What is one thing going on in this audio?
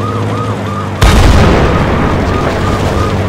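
A cannon fires with a loud blast.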